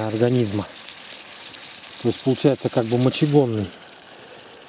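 Food sizzles in a frying pan.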